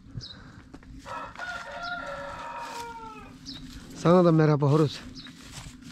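A cow moos loudly nearby.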